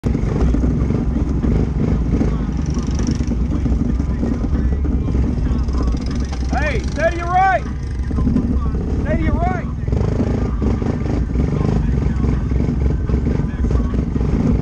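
An all-terrain vehicle engine rumbles close by as it rides over a dirt trail.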